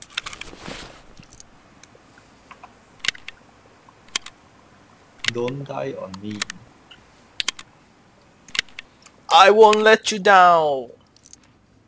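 Soft clicks tick now and then.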